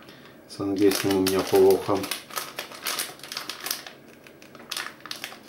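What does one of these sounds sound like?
A plastic snack wrapper crinkles as it is handled.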